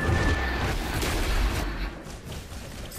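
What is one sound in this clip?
A magic attack blasts with a rushing whoosh.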